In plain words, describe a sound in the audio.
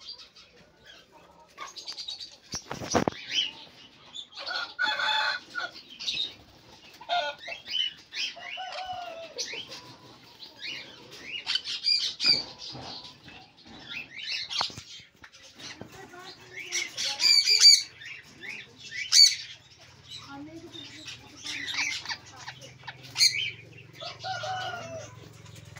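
Parrots squawk and screech loudly close by.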